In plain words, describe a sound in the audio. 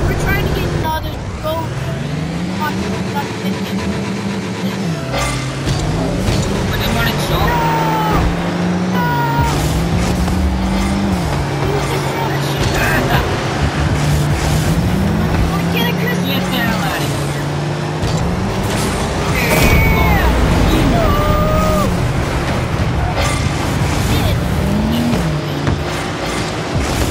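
Game car engines hum and rev steadily.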